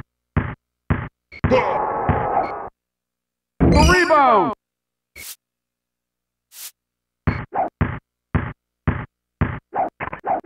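A basketball bounces on a hard court in a steady rhythm.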